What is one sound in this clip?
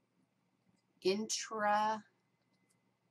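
A woman speaks briefly and calmly into a close microphone.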